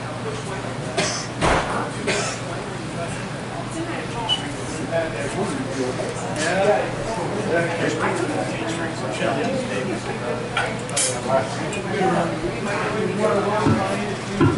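A drum kit plays a beat with cymbals.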